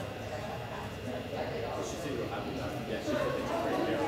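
A man talks quietly in a large echoing hall.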